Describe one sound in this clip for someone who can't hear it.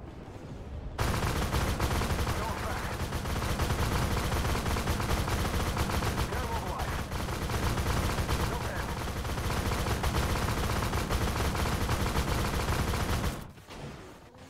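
Loud gunfire and explosions roar continuously.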